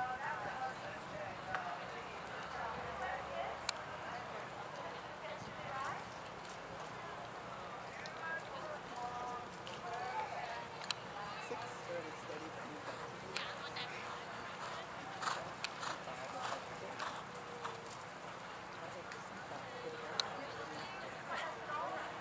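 A horse's hooves thud softly on loose dirt as it trots.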